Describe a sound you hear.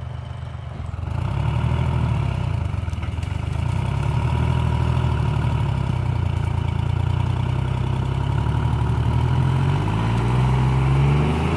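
A forestry mulcher grinds through brush, growing louder as it approaches.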